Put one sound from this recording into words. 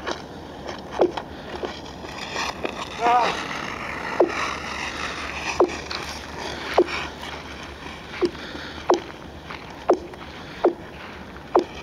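Thin ice rings out with sharp, echoing pings under a skater.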